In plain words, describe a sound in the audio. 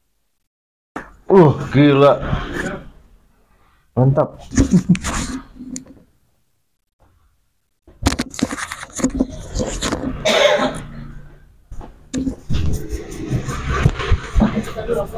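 A young man groans and laughs close by.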